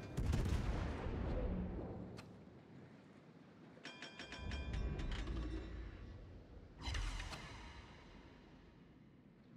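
Heavy naval guns fire in loud booming salvos that rumble away.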